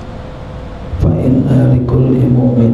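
A middle-aged man speaks steadily into a microphone, heard through a loudspeaker in an echoing room.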